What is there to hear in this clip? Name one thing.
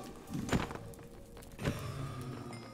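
A game creature is struck with a short thud.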